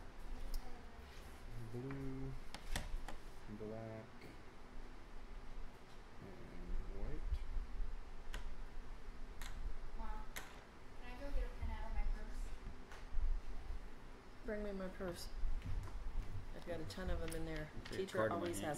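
Plastic game tokens click on a wooden table.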